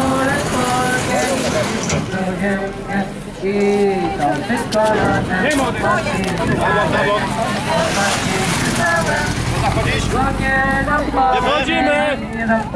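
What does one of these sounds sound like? A crowd of men and women talk and call out nearby outdoors.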